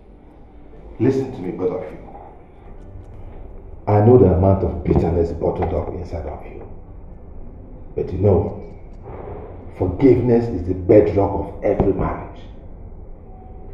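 An older man speaks sternly nearby.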